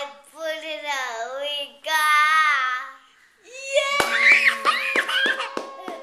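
A toddler laughs loudly and happily close by.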